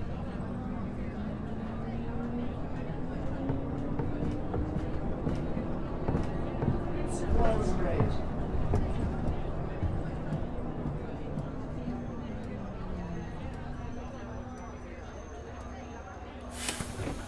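Tyres roll on a road surface.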